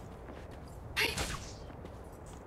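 Short whooshing blows ring out from a game fight.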